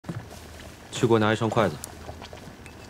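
A young man speaks in a firm, commanding tone.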